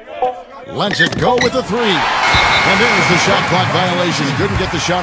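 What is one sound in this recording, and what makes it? An arena crowd cheers loudly.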